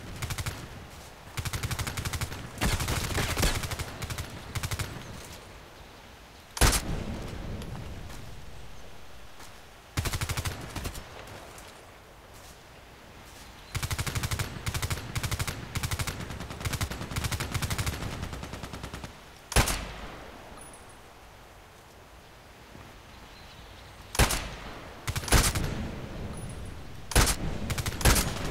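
Rifle shots crack in short bursts, with a booming echo.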